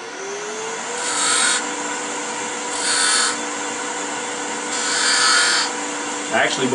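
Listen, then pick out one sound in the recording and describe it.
A chisel scrapes against spinning wood in short bursts.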